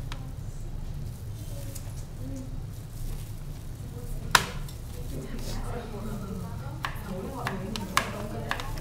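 Noodles squelch and slap as they are mixed in sauce.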